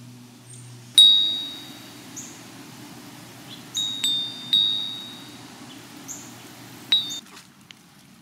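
Metal wind chimes ring and clink in a breeze.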